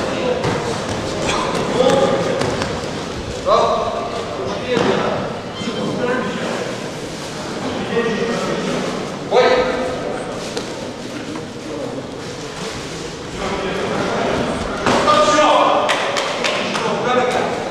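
Men shout from the side of the mat.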